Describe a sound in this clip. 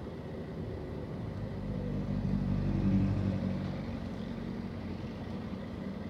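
A motorbike passes close by, rising and then fading.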